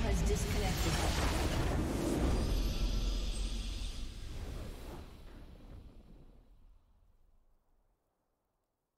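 A triumphant game fanfare swells and fades out.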